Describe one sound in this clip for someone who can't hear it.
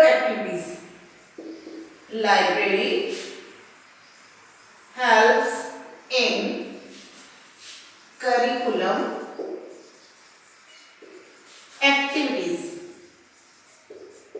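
A woman speaks calmly and clearly into a close microphone, in short phrases with pauses.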